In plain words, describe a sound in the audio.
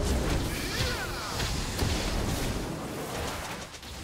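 Game weapons clash in short hits.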